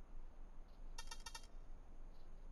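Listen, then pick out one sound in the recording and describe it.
A keypad gives a short run of electronic beeps.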